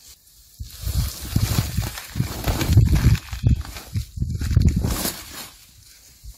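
Soil rustles and thuds as a root ball is pulled from a pot.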